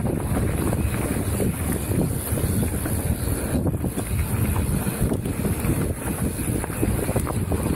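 Wind rushes and buffets loudly past a helmet microphone.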